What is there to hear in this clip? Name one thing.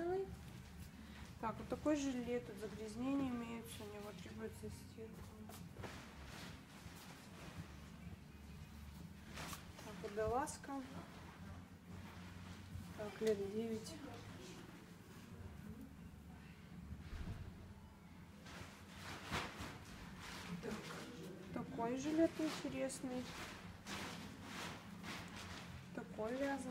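Cloth rustles softly as garments are laid down one on top of another.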